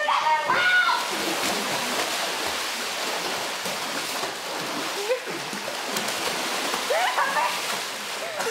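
Water splashes and churns loudly as swimmers thrash.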